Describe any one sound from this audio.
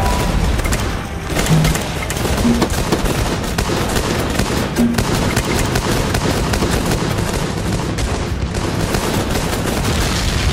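Explosions boom in a video game.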